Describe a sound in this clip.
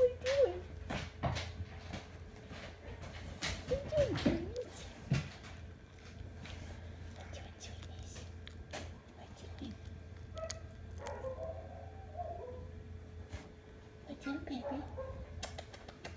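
A puppy chews and gnaws on a soft toy, close by.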